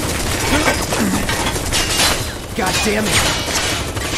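A sword clangs against metal.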